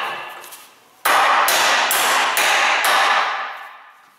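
A hammer strikes metal repeatedly with ringing clangs.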